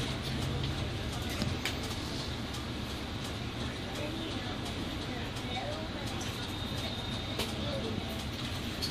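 A bus engine rumbles steadily from inside the cab.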